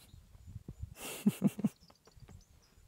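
A man chuckles softly.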